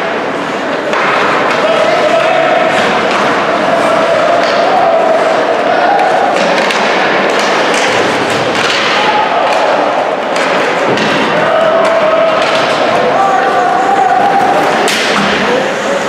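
A crowd of spectators cheers and calls out in a large echoing rink.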